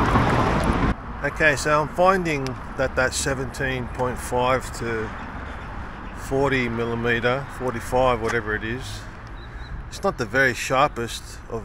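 A middle-aged man talks with animation close to a microphone, outdoors.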